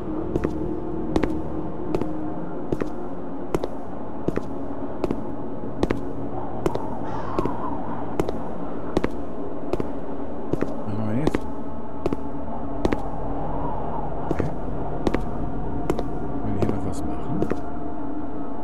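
Slow footsteps thud steadily on a wooden floor.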